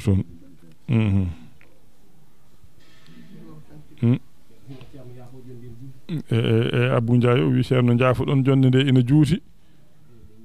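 An elderly man chants loudly in a drawn-out, sung voice, with pauses between phrases.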